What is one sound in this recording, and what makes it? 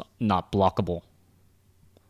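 A young man speaks briefly and with animation, close to a microphone.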